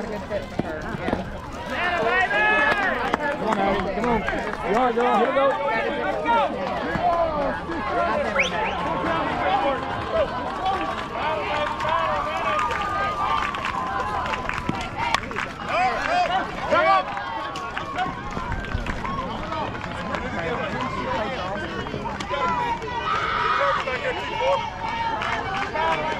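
Young girls cheer and chatter loudly outdoors.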